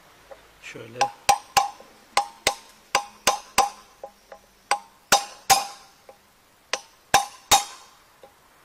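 A hammer strikes metal in sharp, ringing blows.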